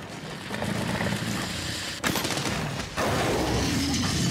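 Fiery blasts burst with loud bangs.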